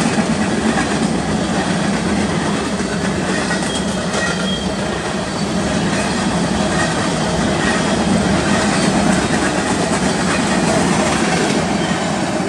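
Freight cars rumble and clatter steadily past on the rails close by.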